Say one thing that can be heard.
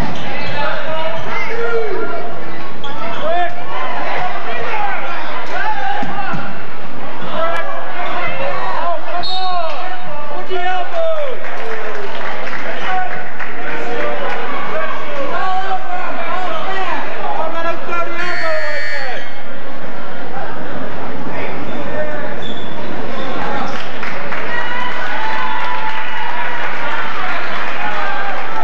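A crowd of spectators talks and shouts close by in a large echoing gym.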